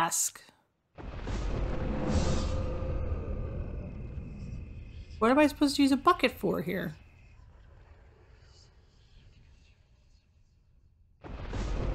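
A deep magical whoosh swells and slowly fades.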